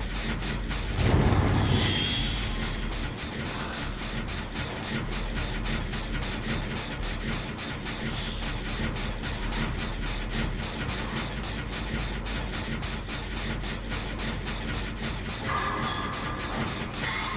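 A machine rattles and clatters steadily as it is being repaired.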